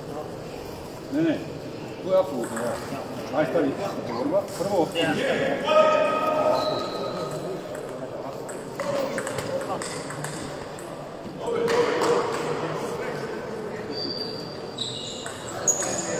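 A table tennis ball clicks back and forth between paddles and the table in an echoing hall.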